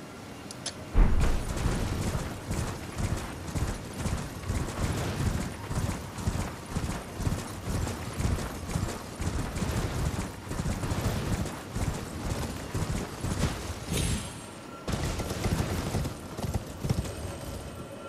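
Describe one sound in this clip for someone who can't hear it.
Horse hooves gallop steadily over grass and rock.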